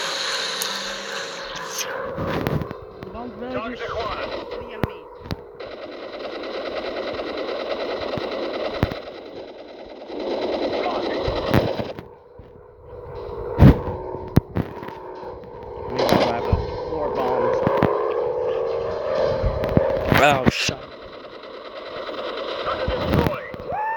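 Machine guns fire in short bursts.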